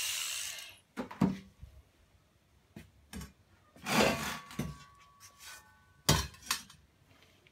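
A sheet steel cylinder and end cap clank and ring as they are handled.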